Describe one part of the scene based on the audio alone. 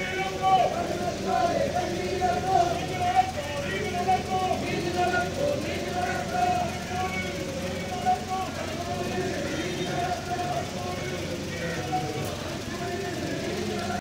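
A crowd of women chants slogans together outdoors.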